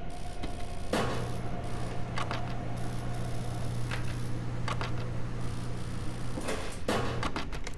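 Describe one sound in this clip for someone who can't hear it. A wheel balancing machine hums steadily as a wheel spins.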